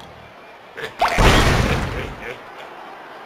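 Cartoon wooden blocks crash and clatter.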